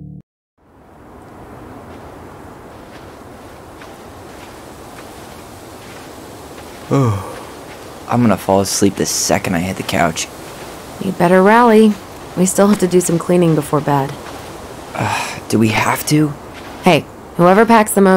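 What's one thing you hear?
Wind blows softly through trees.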